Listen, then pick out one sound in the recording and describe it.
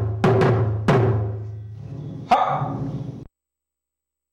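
Sticks strike a large drum with deep, booming hits that ring out.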